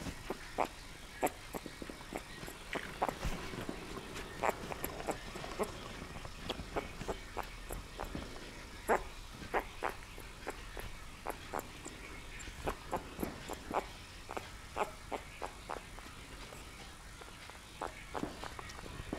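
A newborn puppy squeaks and whimpers softly, close by.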